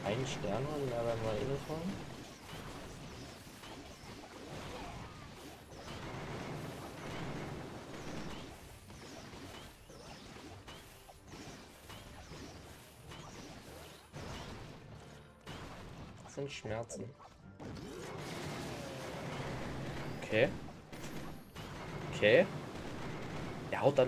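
Fire blasts roar and crackle in a battle game.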